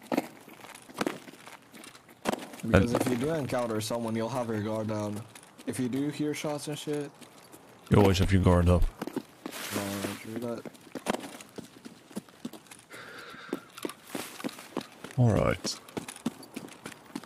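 Footsteps crunch over rocks and grass.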